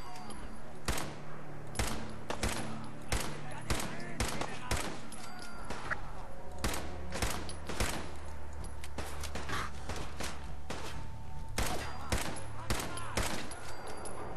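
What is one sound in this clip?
Gunshots fire in quick, repeated bursts.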